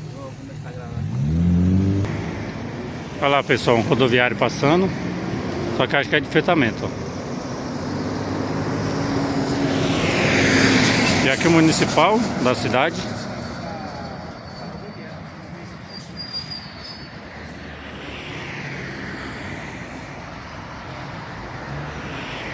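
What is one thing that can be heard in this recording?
Traffic rumbles along a road outdoors.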